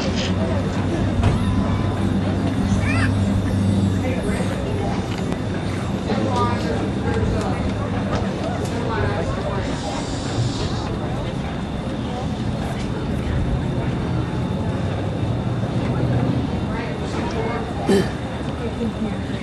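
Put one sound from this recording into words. A marching band plays sustained low brass notes outdoors in a large open stadium.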